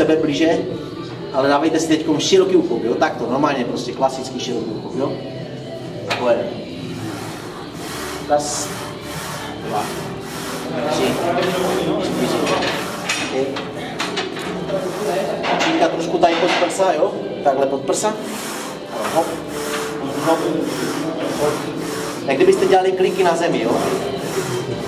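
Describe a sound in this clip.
A man talks steadily close by.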